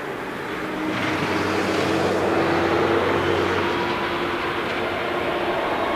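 A jet engine whines steadily at a high pitch.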